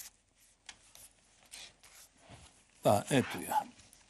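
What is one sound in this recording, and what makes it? Pages of a booklet rustle as a man leafs through them.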